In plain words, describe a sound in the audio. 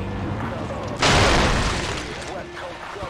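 A vehicle crashes into a tree with a loud thud.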